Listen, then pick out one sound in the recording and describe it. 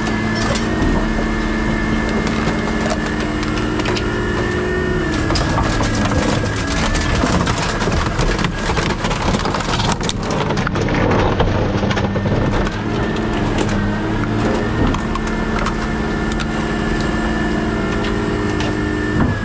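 A heavy machine engine hums and whines steadily throughout.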